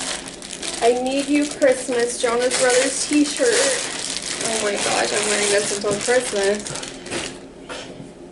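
A plastic bag crinkles as it is torn open.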